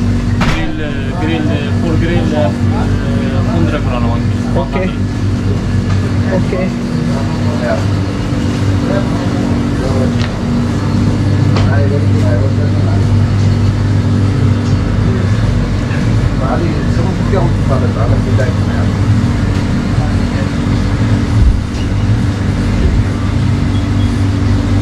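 Refrigerated display counters hum steadily.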